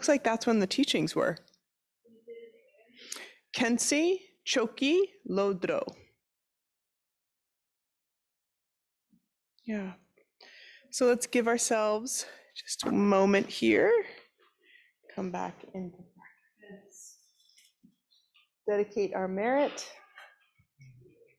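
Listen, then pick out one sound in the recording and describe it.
A woman reads aloud calmly into a close microphone.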